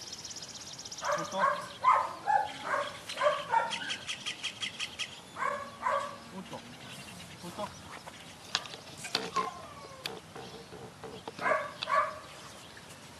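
An adult man gives short, firm commands outdoors.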